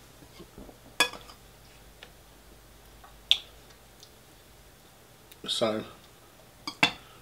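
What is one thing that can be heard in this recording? A metal spoon clinks sharply against a bowl.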